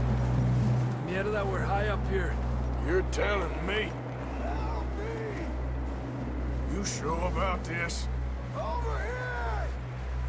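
A man calls out and talks loudly, some distance away.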